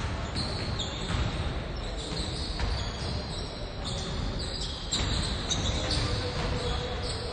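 Basketballs bounce on a wooden court in a large echoing hall.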